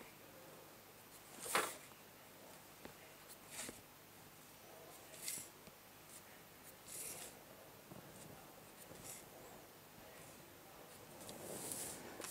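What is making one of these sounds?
A pencil scratches along a ruler on paper.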